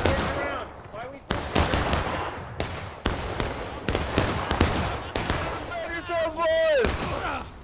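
Muskets fire in rapid bursts, with sharp cracks echoing outdoors.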